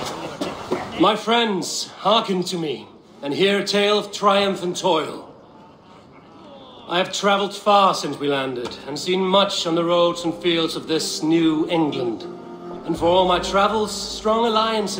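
A man speaks loudly and boldly, as if addressing a hall.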